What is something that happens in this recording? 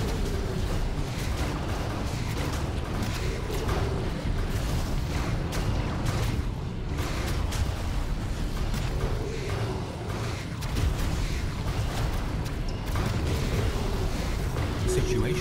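Deep explosions rumble steadily.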